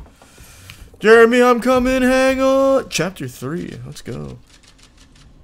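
A young man sings out loudly and excitedly into a microphone.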